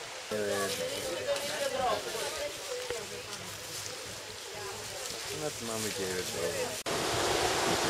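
A group of adults chatter outdoors nearby.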